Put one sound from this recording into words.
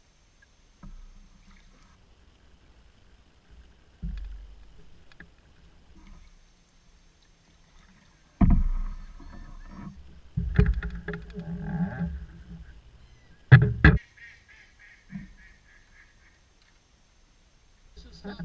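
Water laps against the side of a canoe.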